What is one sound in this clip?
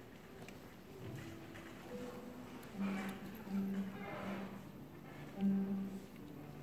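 A guitar plays soft plucked notes.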